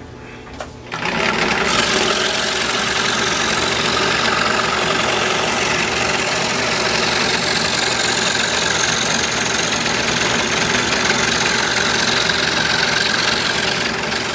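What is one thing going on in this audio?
A scroll saw buzzes steadily as it cuts through wood.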